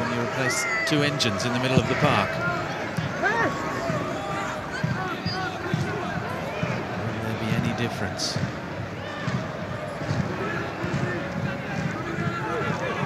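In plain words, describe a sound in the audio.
A crowd murmurs and cheers from the stands.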